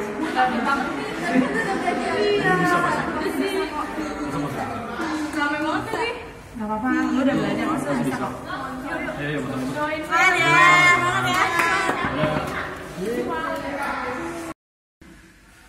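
Young women talk with animation close by.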